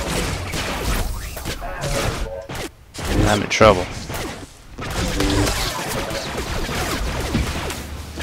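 Blasters fire rapid shots.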